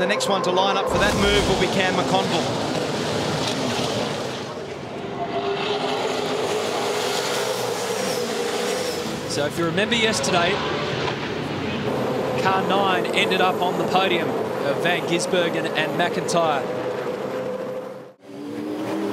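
Racing car engines roar loudly as cars speed past.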